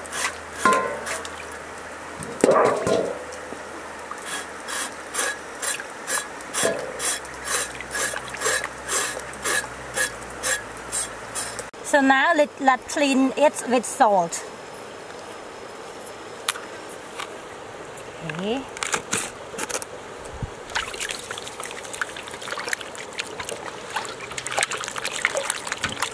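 A river flows over stones nearby.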